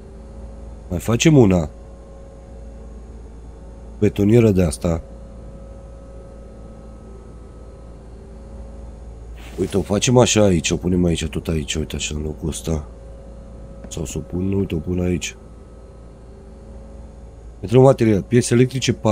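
A man speaks casually into a close microphone, in bursts.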